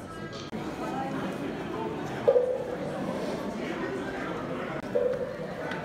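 A crowd of adults murmurs and chatters in a large echoing hall.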